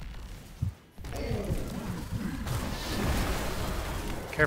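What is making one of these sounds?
Magical blasts crackle and boom in a video game.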